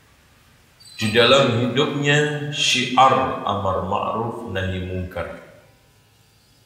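A middle-aged man speaks steadily through a microphone in an echoing hall.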